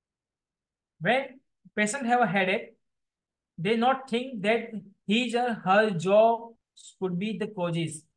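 A man speaks calmly through a microphone, as if lecturing.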